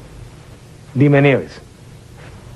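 A man speaks loudly and emphatically.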